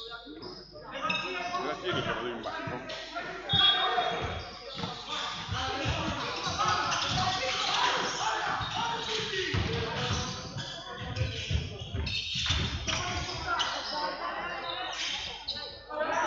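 A crowd of spectators murmurs and chatters.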